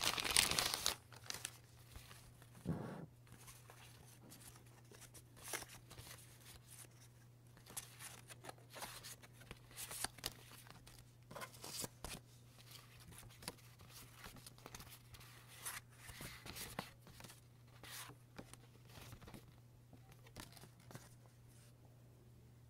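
Paper sheets rustle and shuffle in hands.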